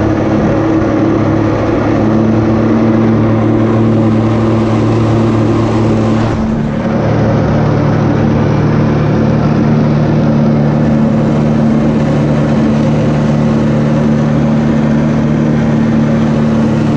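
Water jets roar and spray beneath a hovering board.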